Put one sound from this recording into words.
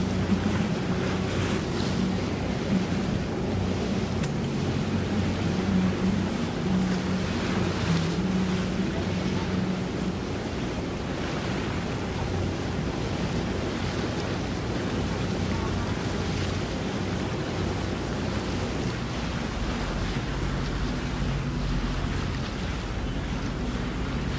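A boat engine idles with a low steady hum.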